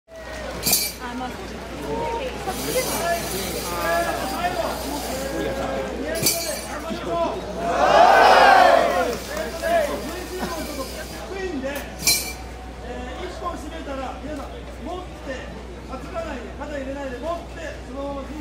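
A large crowd of men and women chatters and calls out all around, outdoors.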